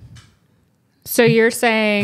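A woman speaks close to a microphone.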